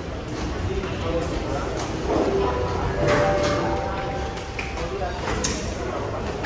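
Several adults chatter quietly in a large echoing hall.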